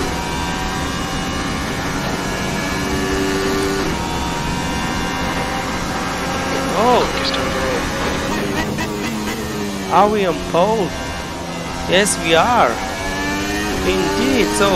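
A racing car engine whines steadily at high revs, rising and falling with gear changes.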